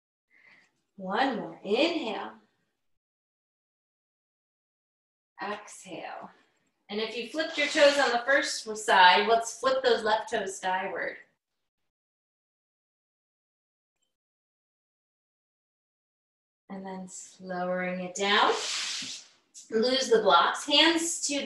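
A woman speaks calmly into a nearby microphone, in bursts with pauses.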